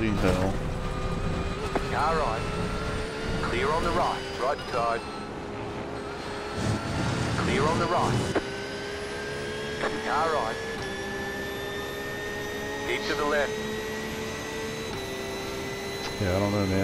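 A young man speaks in short bursts through a close microphone.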